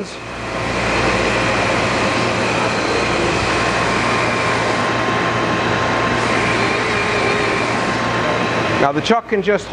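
A grinding machine motor whirs and hums steadily.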